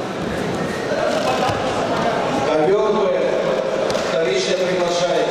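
Voices shout from the crowd, louder toward the end.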